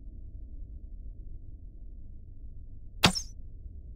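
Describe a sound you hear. A crossbow fires a bolt with a sharp twang.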